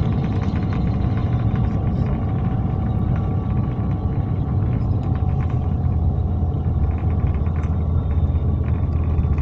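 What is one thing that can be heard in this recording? A vehicle rumbles steadily as it rolls along.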